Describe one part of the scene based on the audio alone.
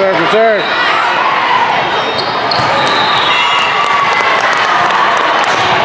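A volleyball is struck with a slap.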